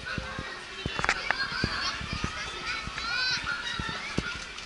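Children shout and squeal on a ride nearby.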